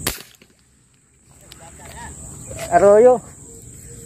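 A fishing bait splashes into still water.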